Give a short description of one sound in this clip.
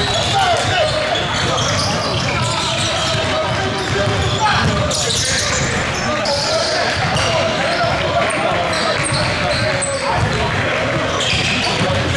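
Basketballs bounce repeatedly on a wooden floor in a large echoing hall.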